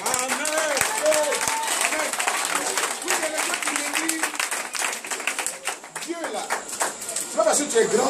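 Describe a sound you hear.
A crowd of men and women sings and cheers loudly.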